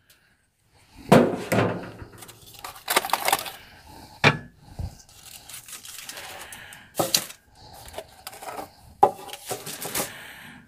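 Aluminium foil crinkles as a pan is handled.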